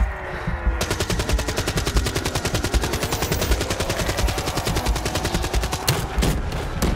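A gun fires in a rapid, steady burst.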